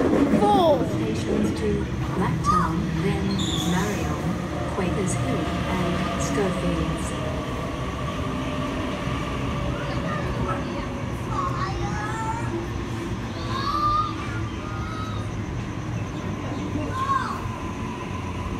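A train rumbles past close by and pulls away.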